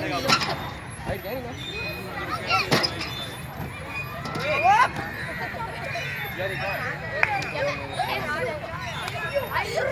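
Children chatter and shout outdoors.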